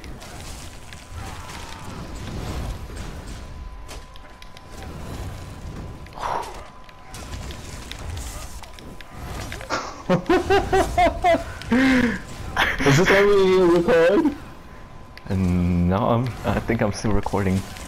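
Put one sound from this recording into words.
Fiery magic spells whoosh and burst in a fight.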